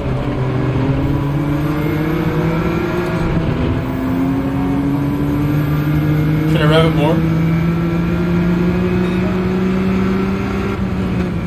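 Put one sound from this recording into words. A racing car engine roars and rises in pitch as it accelerates through the gears.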